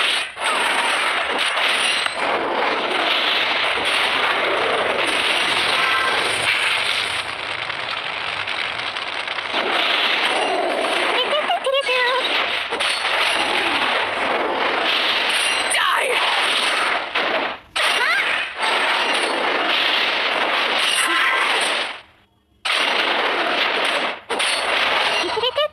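Video game combat effects clash and burst loudly.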